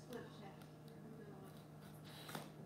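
A pencil scratches on cardboard.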